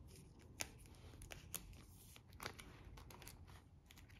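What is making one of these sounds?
Plastic pages of a binder flip over with a soft swish.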